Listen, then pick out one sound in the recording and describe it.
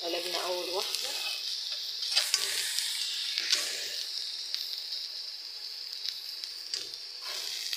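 Fish sizzles and spits loudly in hot oil.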